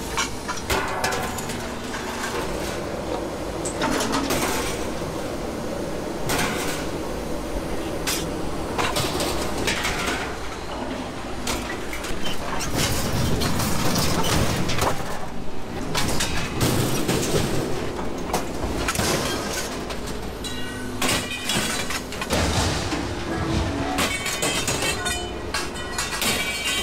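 A heavy machine engine rumbles steadily outdoors.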